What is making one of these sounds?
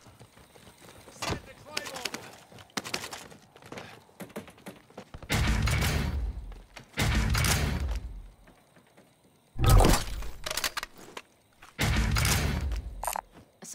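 Metallic clicks and rattles sound as guns are picked up and swapped.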